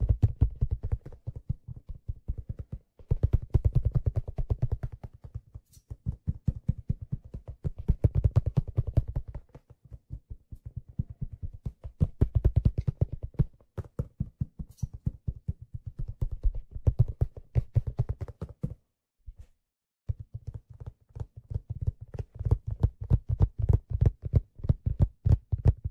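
A hand drum is struck quickly and steadily up close, with deep booming beats.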